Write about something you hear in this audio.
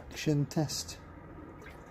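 Something drops into water with a splash.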